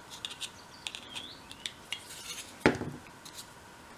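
A cutting tool snips through a small wooden piece.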